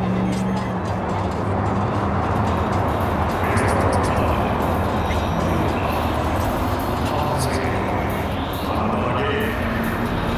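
Cars drive past on a busy road.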